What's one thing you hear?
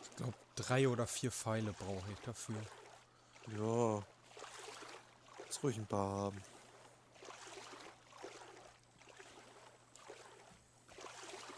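Ocean water laps gently.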